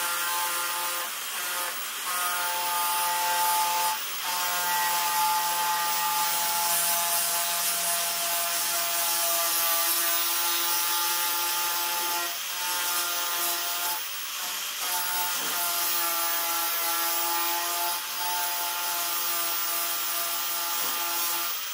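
An angle grinder whines loudly as it sands a surface, its pitch dipping now and then.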